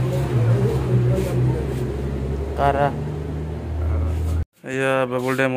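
An older man talks on a phone.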